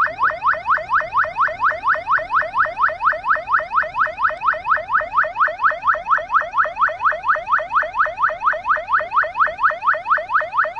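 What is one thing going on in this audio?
A siren yelps rapidly and without pause close by.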